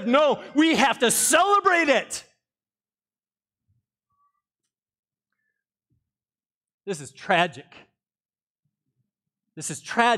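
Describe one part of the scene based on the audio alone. A middle-aged man preaches with animation through a microphone, pausing between phrases.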